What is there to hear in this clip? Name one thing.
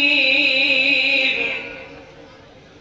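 A man chants in a loud, drawn-out voice through a microphone.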